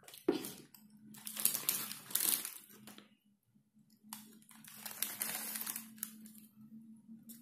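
Paper wrappers rustle and crinkle close by.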